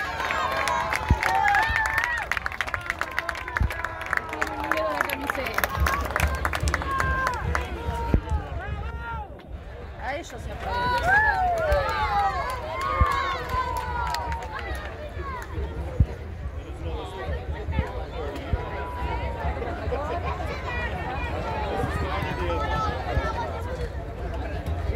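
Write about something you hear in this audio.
A large outdoor crowd chatters and cheers loudly.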